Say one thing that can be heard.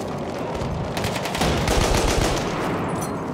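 Rifle shots crack in rapid succession.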